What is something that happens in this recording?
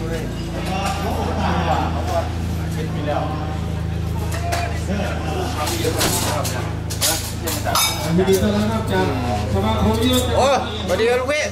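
Young men talk and call out to each other nearby.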